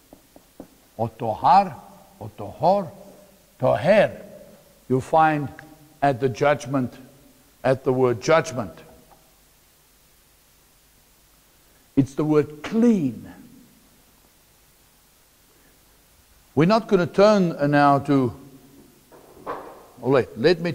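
A middle-aged man speaks calmly into a clip-on microphone, in short phrases with pauses.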